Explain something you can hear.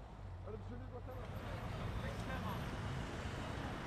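Car traffic hums along a street outdoors.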